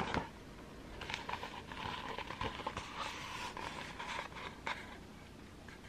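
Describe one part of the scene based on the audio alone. Book pages rustle and crinkle as fingers handle them.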